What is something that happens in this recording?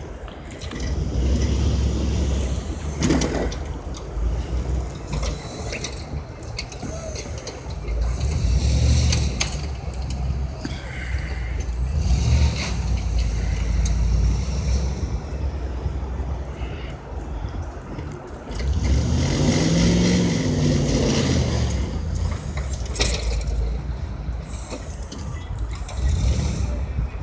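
A pickup truck engine rumbles and revs nearby.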